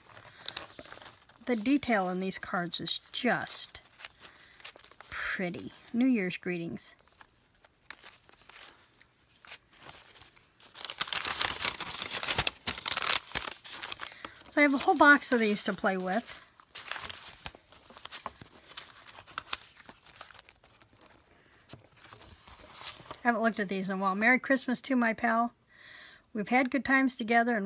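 Paper cards rustle and shuffle as hands sort through them.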